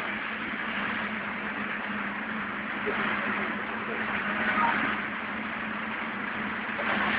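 Traffic rumbles steadily on a street outdoors.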